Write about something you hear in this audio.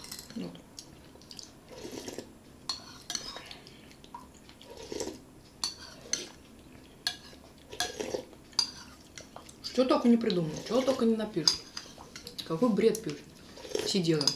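A man slurps soup loudly from a spoon.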